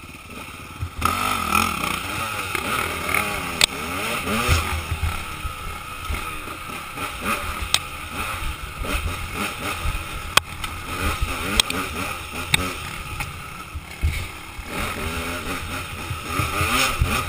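A dirt bike engine revs loudly and rises and falls in pitch as the bike rides along a bumpy trail.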